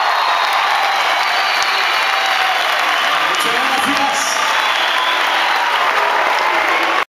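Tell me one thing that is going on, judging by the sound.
A crowd cheers and screams loudly in a large hall.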